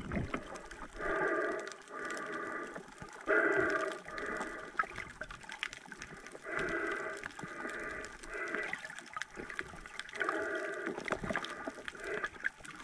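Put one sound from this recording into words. A swimmer breathes heavily through a snorkel, heard underwater.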